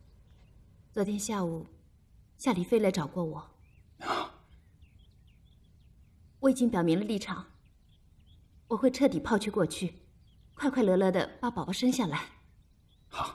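A young woman speaks calmly and earnestly nearby.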